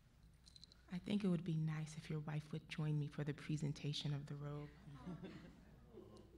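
A woman speaks warmly and with animation into a microphone.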